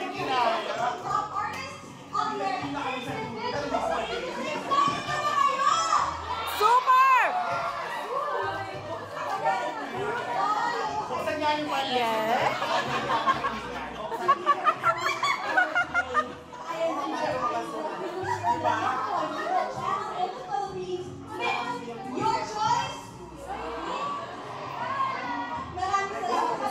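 A woman sings through loudspeakers, backed by music.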